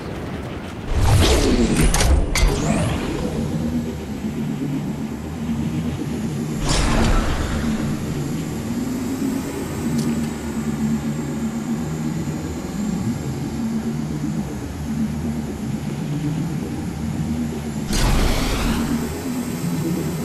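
A glider whooshes loudly in sudden bursts.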